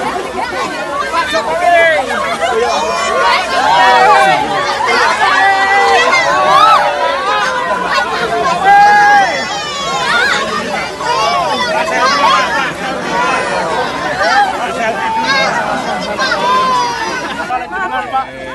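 Women in a crowd scream and cheer with excitement.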